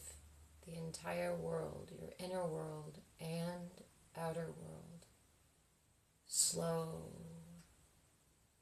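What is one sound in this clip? A young woman speaks slowly and calmly, close by, in short phrases.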